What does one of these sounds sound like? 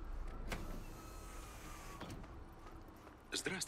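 A vehicle door slides open with a soft mechanical whir.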